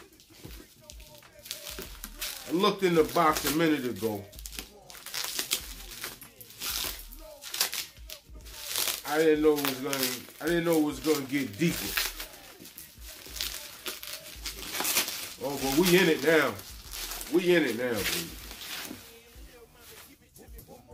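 Plastic wrapping crinkles and rustles in a man's hands.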